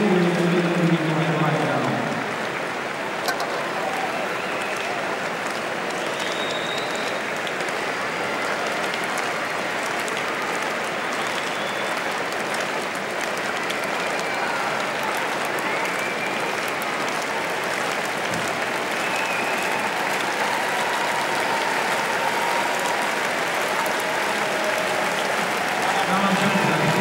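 A large crowd murmurs in an open-air stadium.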